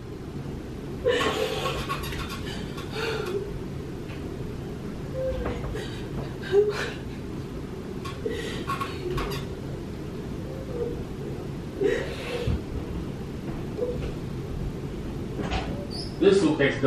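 A man cries and sobs nearby.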